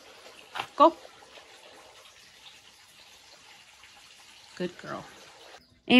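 A small dog barks nearby.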